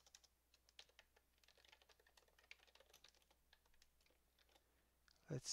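Keys on a keyboard click as someone types.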